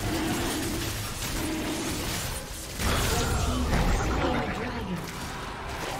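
Magic blasts and clashing weapons crash and whoosh in a fast fight.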